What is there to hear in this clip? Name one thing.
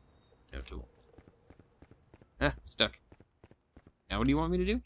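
Footsteps tread steadily on pavement.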